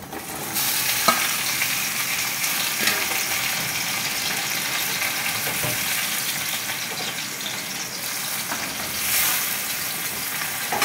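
Vegetable slices sizzle in hot oil in a metal wok.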